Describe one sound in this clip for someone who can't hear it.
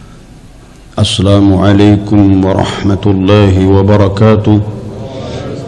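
A man recites in a melodic, chanting voice through a microphone.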